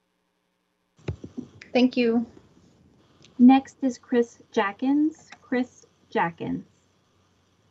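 Another woman speaks calmly through an online call.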